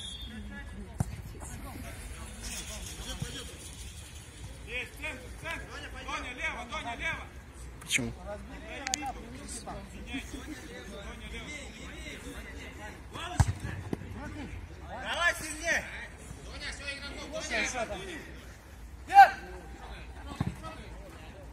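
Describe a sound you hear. A football is kicked outdoors with dull thumps.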